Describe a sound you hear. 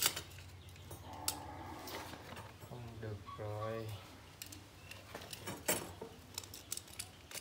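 Cables rustle and scrape against a rough wall.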